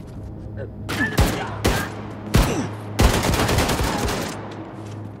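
A machine gun fires loud bursts.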